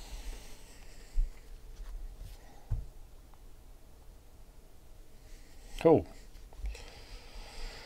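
Cards shuffle and tap as hands handle a stack.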